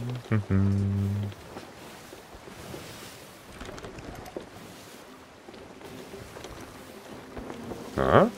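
Waves wash and splash against a wooden ship.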